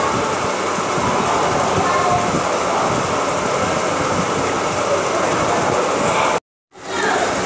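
Many people chatter in a busy, noisy room.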